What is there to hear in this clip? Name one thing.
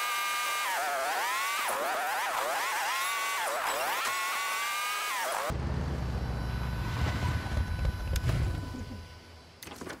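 A motorcycle engine revs, rising and falling in pitch.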